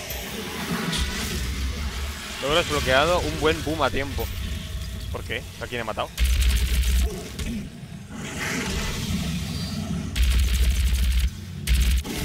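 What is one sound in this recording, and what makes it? Electric energy crackles and explodes.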